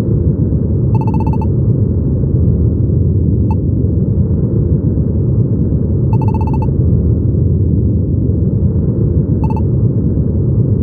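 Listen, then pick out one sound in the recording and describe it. Short electronic beeps chime as dialogue text advances.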